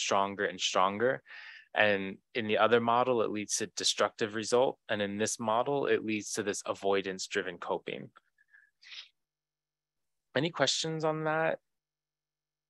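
A man speaks calmly into a microphone, pausing now and then.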